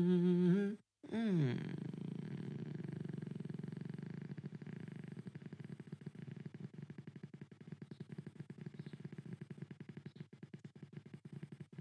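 An electric guitar is strummed rhythmically.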